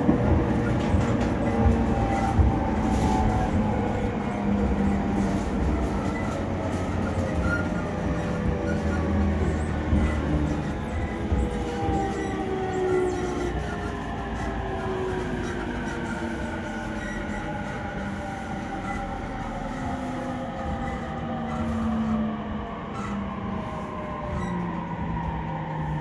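A train's motors whine, their pitch gliding down as it slows.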